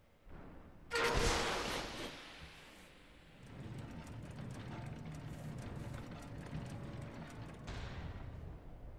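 A heavy metal door grinds and scrapes open.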